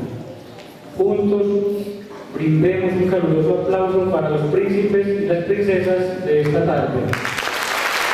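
A middle-aged man speaks slowly through a microphone.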